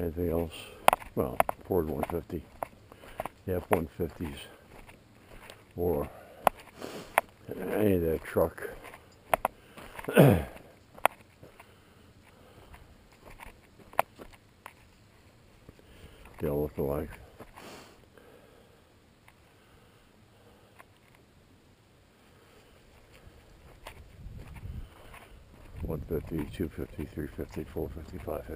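A small dog's paws patter on a dirt road and through grass.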